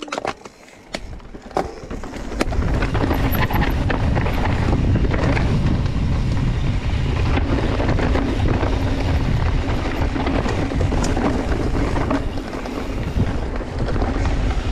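Mountain bike tyres roll and crunch over a dirt trail.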